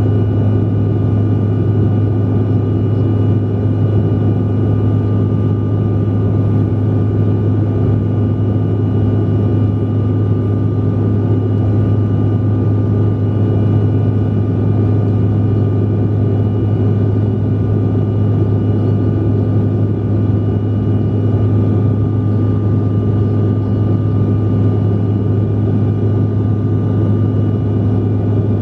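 Jet engines drone steadily in a low, constant roar inside an aircraft cabin.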